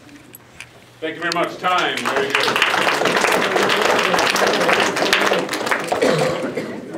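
A crowd of young people chatters loudly in a room.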